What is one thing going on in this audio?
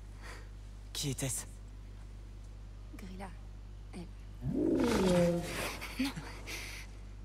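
A young girl speaks quietly and calmly, close by.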